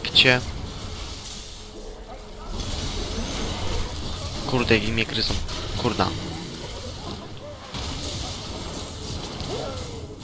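Fiery spells crackle and whoosh in a video game battle.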